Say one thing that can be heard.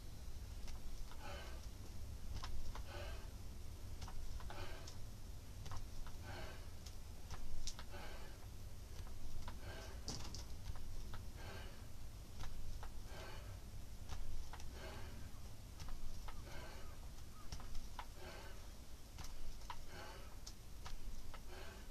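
A man breathes out hard in a steady rhythm as he exercises.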